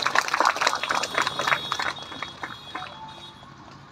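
People clap their hands in a quick rhythm.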